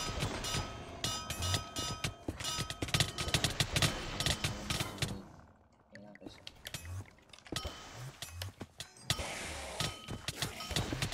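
Game sword hits land with rapid sharp thwacks and dings.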